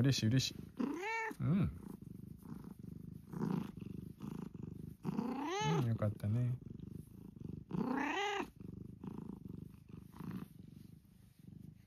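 A cat purrs steadily up close.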